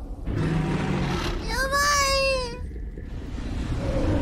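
A huge beast growls deeply.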